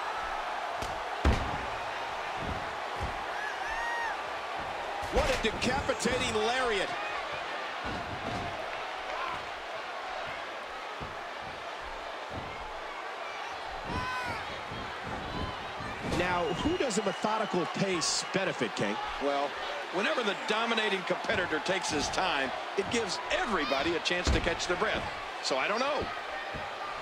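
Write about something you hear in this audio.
A crowd cheers and murmurs throughout in a large arena.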